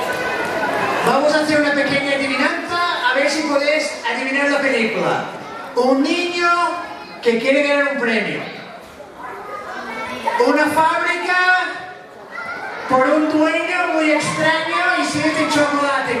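A man talks with animation into a microphone, heard over loudspeakers in a large hall.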